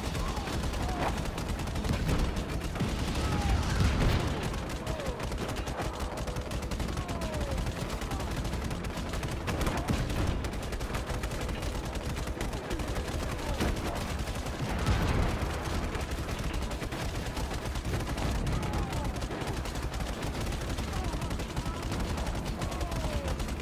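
A tank cannon fires with heavy booming blasts.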